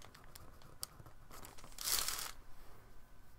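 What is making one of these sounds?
Fingers rub and press tape down onto paper.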